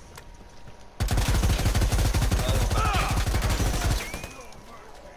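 An automatic rifle fires in bursts.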